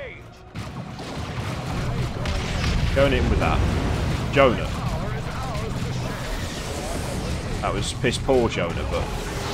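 Gunfire and explosions rumble from a distant battle.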